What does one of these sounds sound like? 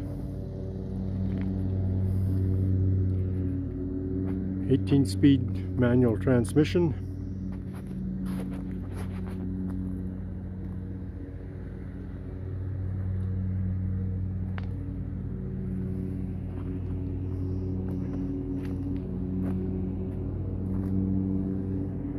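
A big truck's diesel engine idles with a steady low rumble.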